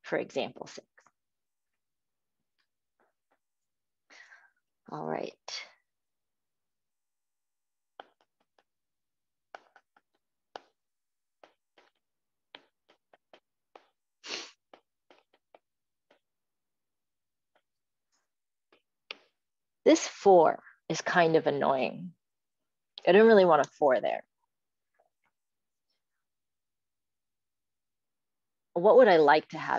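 A young woman explains calmly through an online call microphone, in short bursts with pauses.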